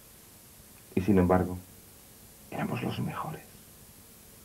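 A middle-aged man speaks briefly and calmly, close by.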